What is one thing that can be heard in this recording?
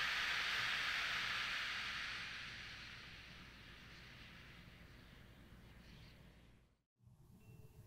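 Beads roll inside a frame drum with a soft, washing hiss that slowly fades.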